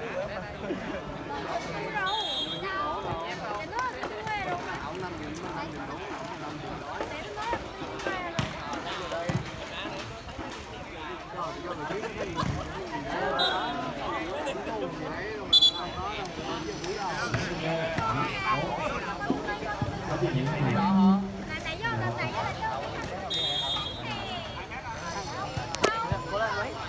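A crowd of young men and women chatter and call out outdoors.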